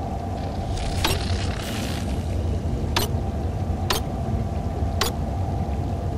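Sharp electronic clicks sound a few times.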